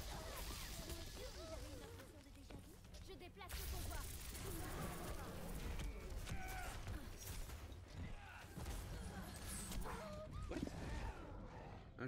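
A video game weapon fires rapid energy blasts with loud bursts and explosions.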